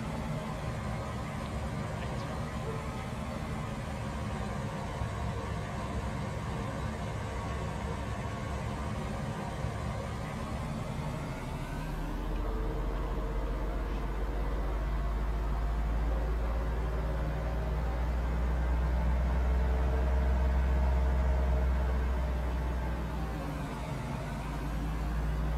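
A truck engine hums and revs up as it speeds along a road.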